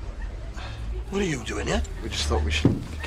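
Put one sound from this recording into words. A man speaks with animation up close.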